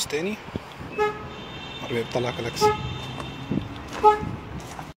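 A car chirps with short electronic beeps.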